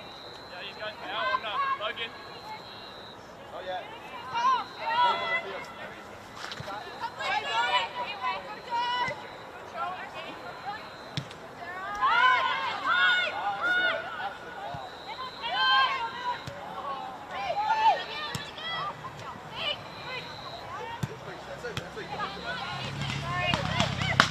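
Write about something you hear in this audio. Young women shout and call out across an open outdoor field.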